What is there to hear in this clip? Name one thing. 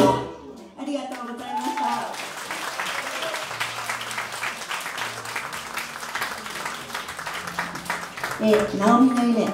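A woman sings through a microphone.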